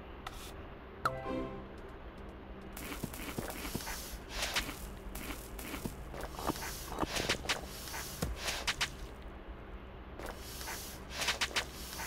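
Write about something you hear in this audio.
Short video game sound effects blip and pop.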